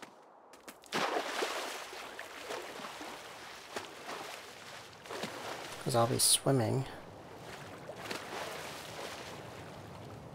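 Water splashes steadily as someone swims.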